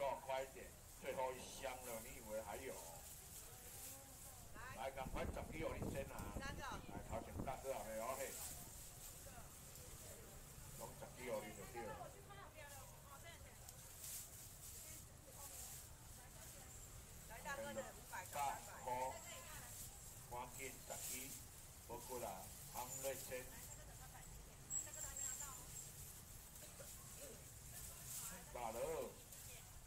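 A man talks casually nearby.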